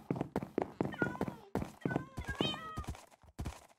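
A cat meows a few times.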